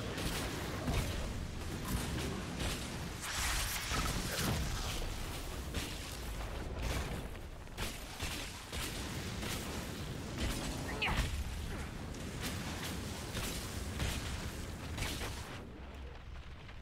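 Magic flames roar and crackle in bursts.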